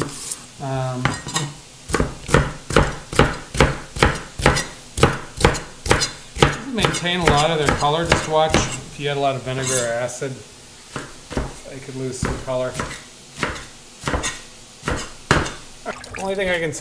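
A knife chops rhythmically on a plastic cutting board.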